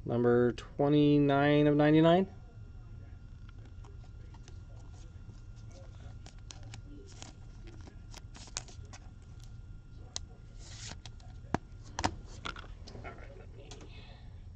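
Cards and plastic sleeves rustle and tap as hands handle them close by.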